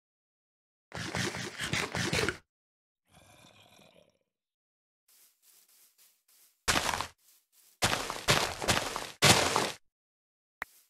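Loud crunchy chewing sounds come in quick bursts.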